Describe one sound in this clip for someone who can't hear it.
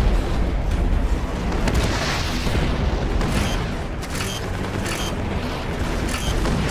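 A tank engine rumbles deeply and steadily.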